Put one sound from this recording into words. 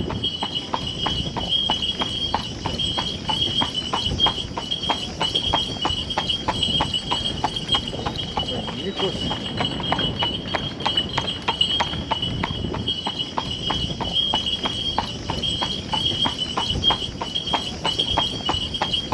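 A carriage rattles along the road.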